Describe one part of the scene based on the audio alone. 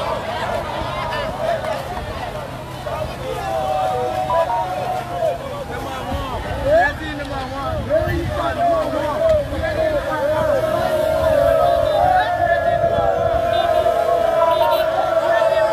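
A large crowd of young men and women cheers and shouts outdoors.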